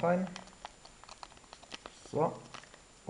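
A paper sachet crinkles as powder is shaken out of it.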